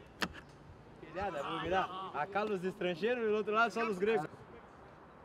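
A man shouts instructions outdoors.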